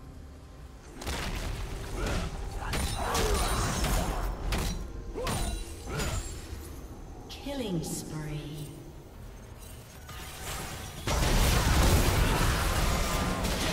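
Fantasy battle sound effects whoosh, crackle and clash.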